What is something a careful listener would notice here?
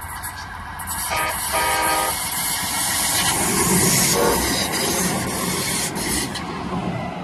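A light rail train rushes past close by with a loud roar.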